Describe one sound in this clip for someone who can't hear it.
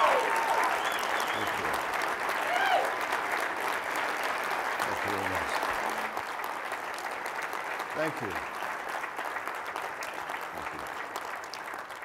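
An elderly man laughs softly.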